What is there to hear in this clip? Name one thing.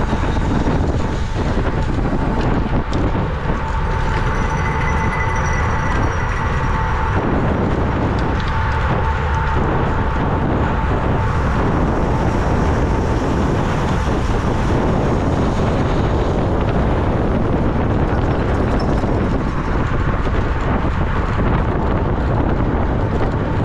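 Bicycle tyres hum on the road.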